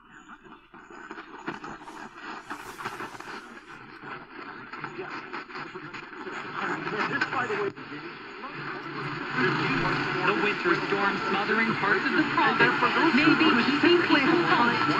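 A small portable radio plays a voice through its tinny speaker, growing steadily louder.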